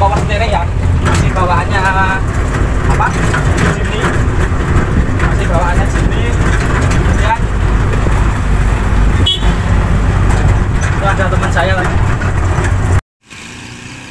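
A small jeep engine drones under load, heard from inside the open cabin while driving.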